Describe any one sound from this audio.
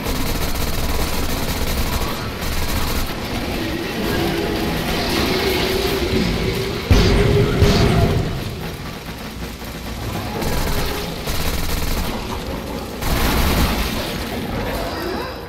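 Energy blasts crackle and explode.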